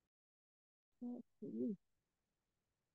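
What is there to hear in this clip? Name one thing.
A woman speaks briefly over an online call.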